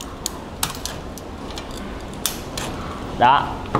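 Metal snips cut through thin metal with sharp clicks.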